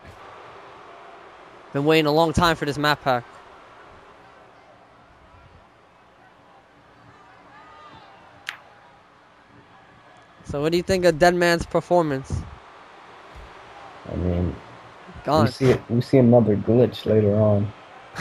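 A large crowd murmurs in a big echoing arena.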